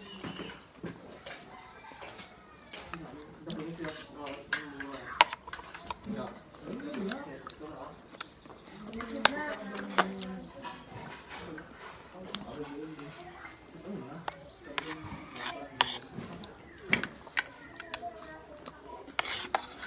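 A metal fork clinks against a plate.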